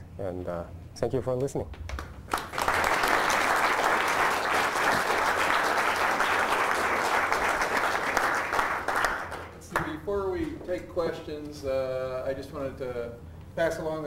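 A young man speaks calmly through a microphone in a large room.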